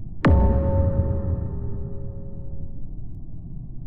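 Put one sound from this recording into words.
A game's sharp sting sounds and rings out.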